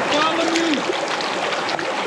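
Shallow water laps gently over stones.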